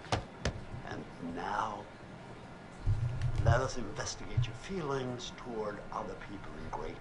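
A middle-aged man speaks slowly and intently, close by.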